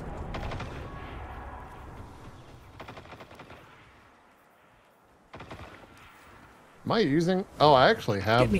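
A man speaks through a close microphone with animation.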